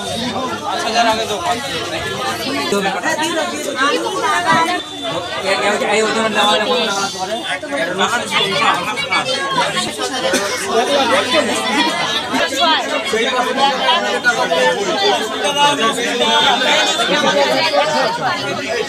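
A crowd of men and women chatter close by.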